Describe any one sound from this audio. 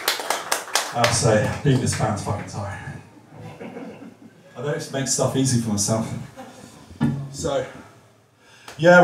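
Men and women chat nearby.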